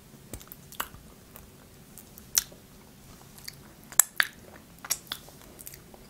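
A young woman licks and smacks her fingers close to a microphone.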